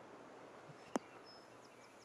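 A golf ball drops onto the grass with a soft thud.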